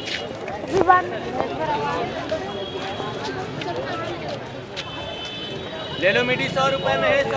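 A crowd of men and women chatters and calls out all around outdoors.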